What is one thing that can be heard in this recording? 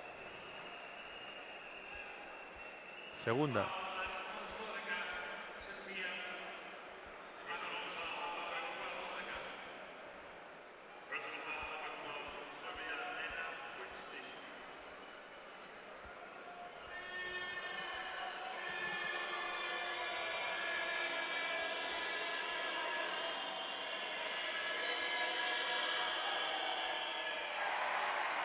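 A large crowd murmurs and shouts in a big echoing arena.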